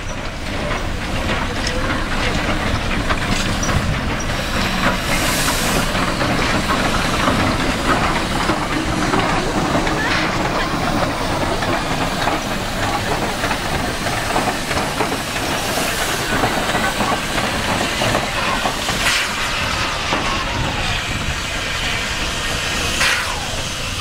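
A steam locomotive chugs and hisses as it rolls slowly past on the tracks.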